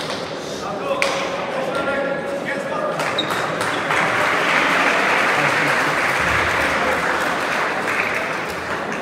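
A hard ball smacks sharply against a wall, echoing in a large hall.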